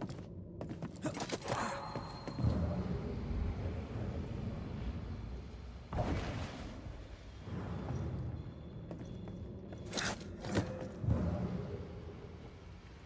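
Magical energy whooshes and crackles in loud bursts.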